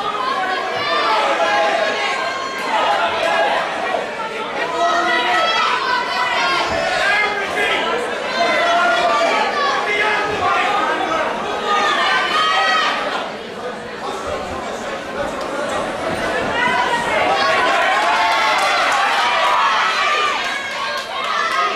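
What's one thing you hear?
A crowd of men and women shouts and cheers loudly all around.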